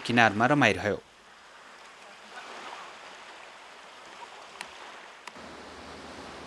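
Small waves lap gently at a shore.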